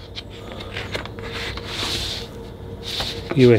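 A paper record sleeve slides out of a cardboard jacket with a soft rustle.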